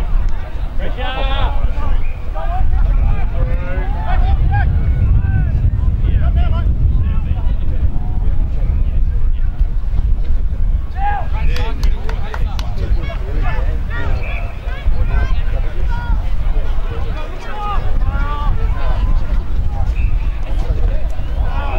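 Men shout to each other outdoors, heard from a distance.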